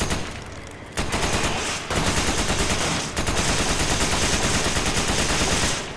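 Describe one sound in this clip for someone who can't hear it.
A rifle fires rapid bursts of shots, ringing out loudly.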